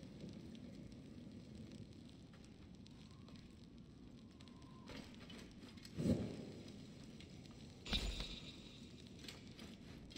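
A burning torch crackles and roars softly.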